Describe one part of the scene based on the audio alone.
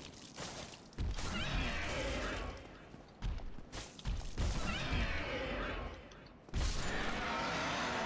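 A dragon roars loudly.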